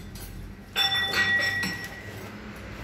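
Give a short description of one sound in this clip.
Metal parts clink and ring as they are handled.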